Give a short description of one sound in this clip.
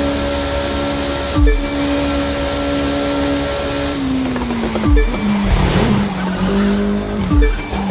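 A racing car engine screams at high revs, then drops in pitch as the car slows.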